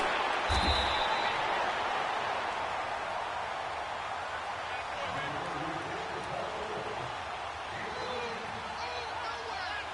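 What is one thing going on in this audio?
A large stadium crowd roars and cheers, loudest at first and then settling.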